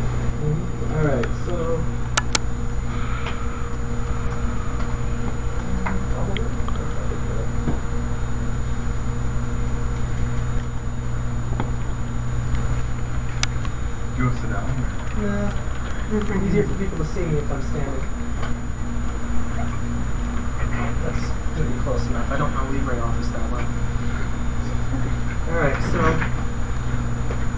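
A man speaks calmly, somewhat distant.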